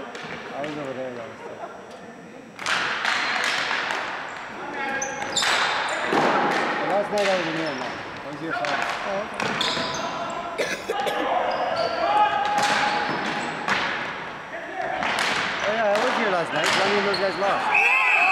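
Ball hockey sticks clack against the ball and a hard floor in a large echoing hall.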